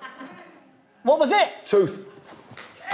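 A second man exclaims in surprise.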